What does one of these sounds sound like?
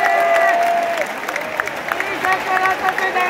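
Fans clap in rhythm.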